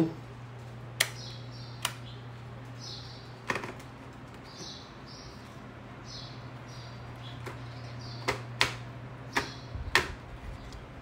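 A helmet visor clicks as it is snapped open and shut.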